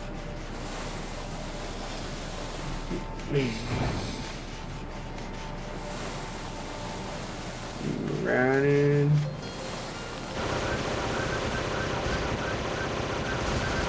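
Footsteps run through soft sand.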